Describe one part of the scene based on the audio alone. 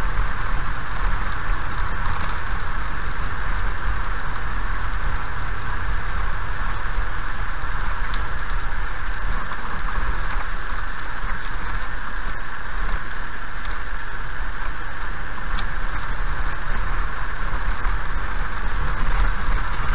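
Tyres roll on a rough road surface.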